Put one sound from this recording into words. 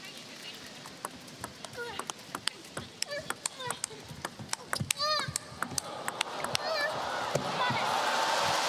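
A table tennis ball clicks rapidly back and forth off paddles and the table.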